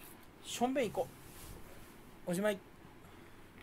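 A young man speaks briefly and casually, close to the microphone.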